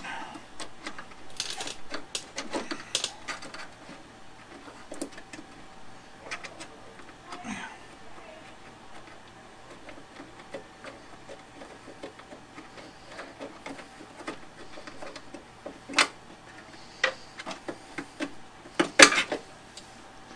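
Metal parts clink and knock against a metal body.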